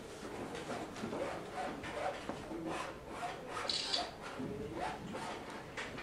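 A brush scrapes softly on a canvas.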